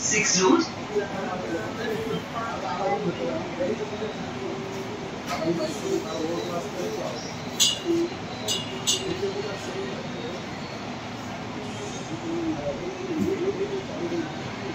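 A train rumbles steadily along an elevated track.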